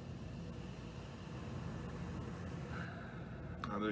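A liquid pours into a glass.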